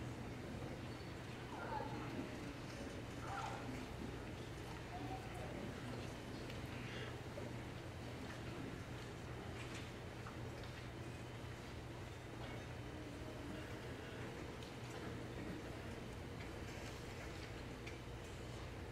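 A concert band plays softly in a large hall.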